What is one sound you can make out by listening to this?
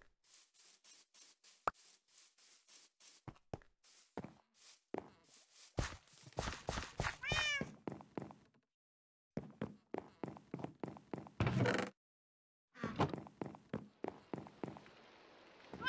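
Footsteps thud across grass and wooden floor.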